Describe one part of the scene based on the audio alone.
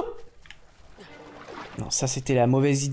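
Water splashes as a swimmer paddles.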